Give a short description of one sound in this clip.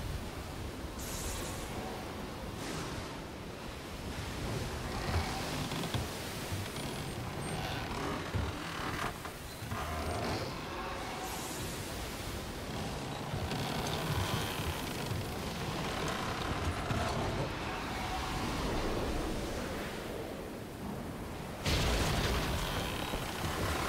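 Wind howls steadily.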